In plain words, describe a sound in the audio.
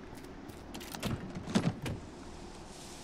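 A metal case clicks and creaks open.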